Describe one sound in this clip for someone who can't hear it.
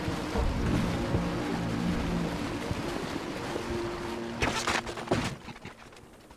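Water splashes against a moving boat's hull.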